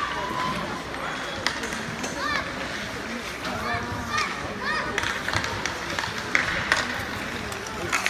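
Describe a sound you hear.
Skates scrape and hiss across ice in an echoing rink.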